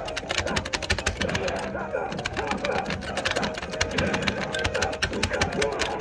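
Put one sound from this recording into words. Arcade game music plays loudly.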